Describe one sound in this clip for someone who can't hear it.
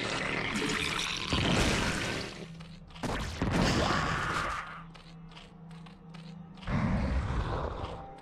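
Energy bolts fire with sharp zaps.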